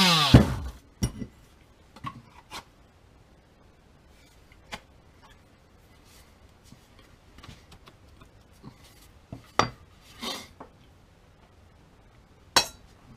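An axe knocks and clatters lightly as it is handled.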